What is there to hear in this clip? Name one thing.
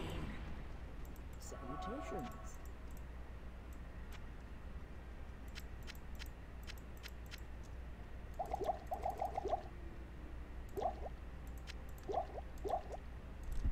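Soft game clicks and clinks sound as items are moved.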